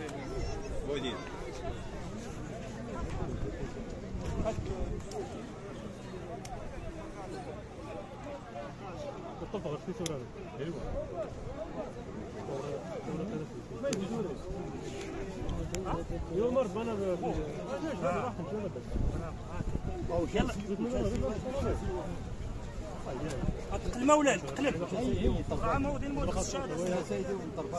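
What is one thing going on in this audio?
Several men and women talk nearby outdoors.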